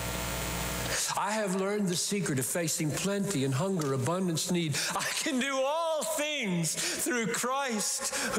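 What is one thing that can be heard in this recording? An elderly man laughs and shouts exuberantly over loudspeakers.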